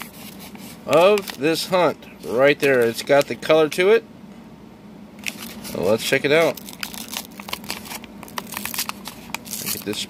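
A paper coin wrapper crinkles and tears as fingers peel it open.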